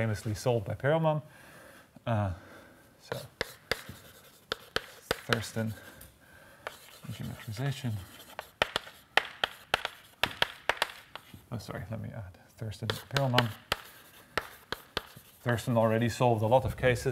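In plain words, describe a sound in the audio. Chalk taps and scratches against a blackboard.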